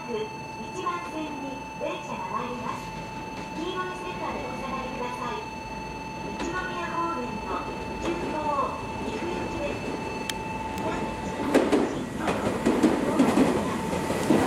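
A train approaches and rumbles into the station.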